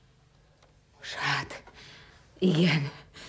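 A woman speaks in a troubled voice, close by.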